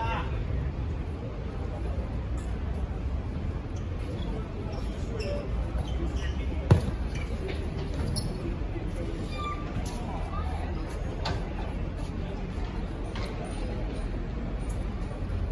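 Balls bounce and thud on a hard court outdoors.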